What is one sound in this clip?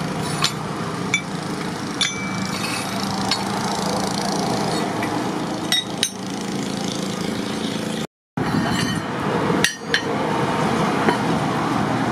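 Metal bars clank as they are shifted in a pile.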